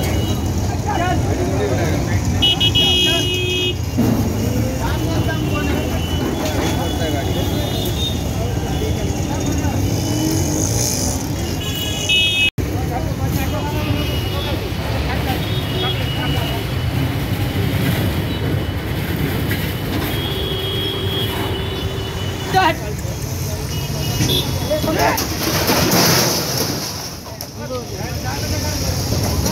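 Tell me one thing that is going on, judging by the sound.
Street traffic hums steadily with horns honking.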